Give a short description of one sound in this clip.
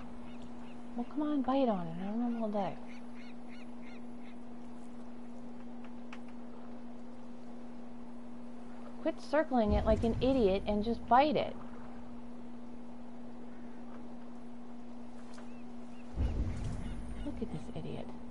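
Gentle waves lap against a small wooden boat.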